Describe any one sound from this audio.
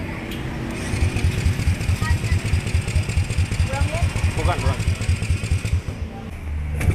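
A motorbike engine idles with a rapid chugging close by.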